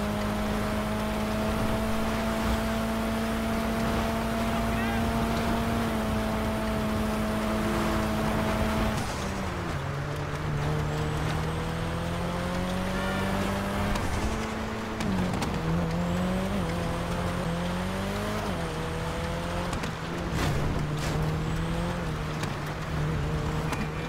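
A sports car engine roars steadily, shifting gears and revving up.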